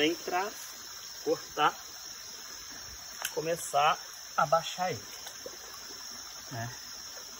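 Water splashes and sloshes as a man steps into a pond.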